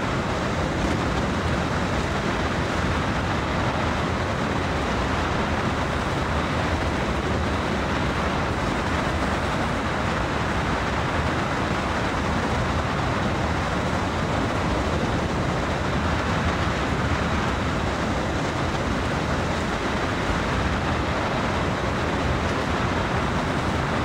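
A locomotive engine rumbles steadily as the train rolls along.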